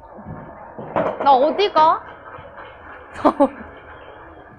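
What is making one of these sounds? A young woman exclaims with animation nearby.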